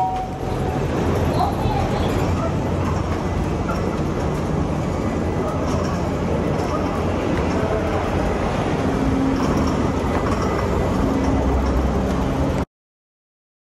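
A bicycle rolls and rattles down a ramp.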